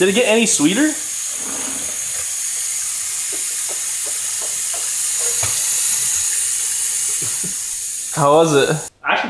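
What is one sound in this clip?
Water runs from a tap into a sink with a steady hiss.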